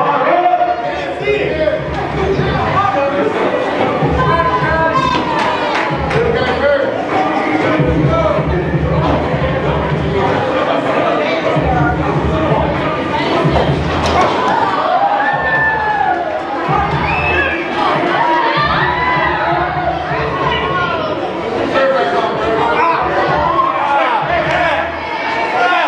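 A crowd of men, women and children shouts and cheers loudly in a large echoing hall.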